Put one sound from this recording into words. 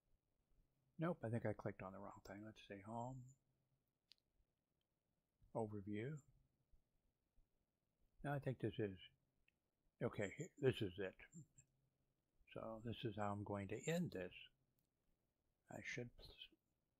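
An older man talks calmly into a close microphone, in short phrases.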